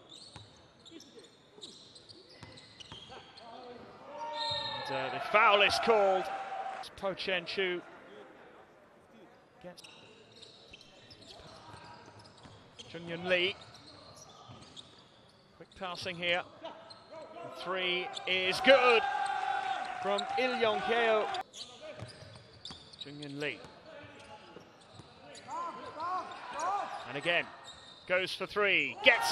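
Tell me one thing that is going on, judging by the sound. Basketball sneakers squeak on a hardwood court.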